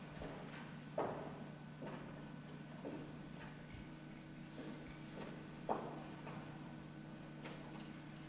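Footsteps knock on a wooden stage.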